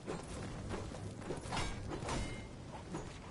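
A pickaxe strikes wood with sharp, repeated knocks.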